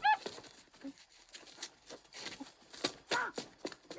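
Footsteps run away on wooden boards.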